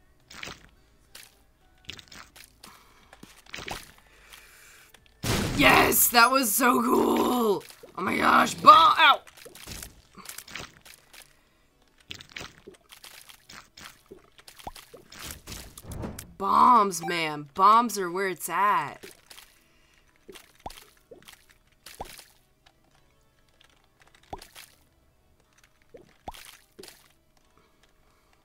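Small wet shots pop and splat again and again.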